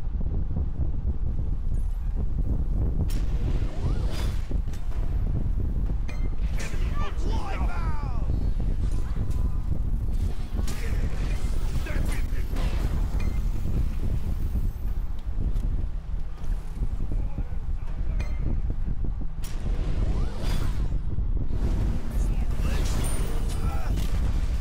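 Game spell effects crackle and whoosh.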